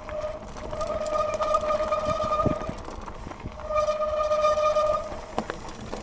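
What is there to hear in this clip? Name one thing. A bicycle's freewheel buzzes loudly while coasting.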